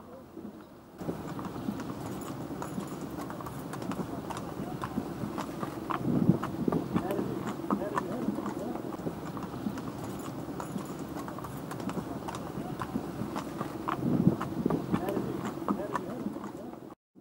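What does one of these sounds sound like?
Carriage wheels roll and rattle on a paved road.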